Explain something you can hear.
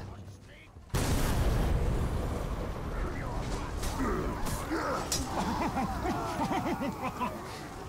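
Fire roars and crackles in a fierce explosion.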